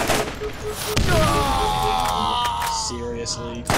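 A man gives a pained death cry.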